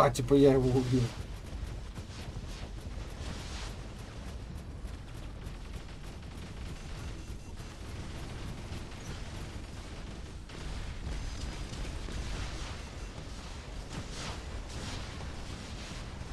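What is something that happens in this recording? Heavy guns fire in rapid bursts.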